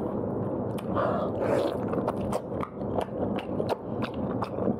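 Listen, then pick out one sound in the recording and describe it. A man bites into crunchy meat and chews noisily up close.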